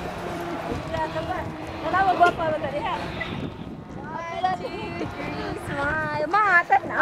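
A woman talks cheerfully close by, outdoors.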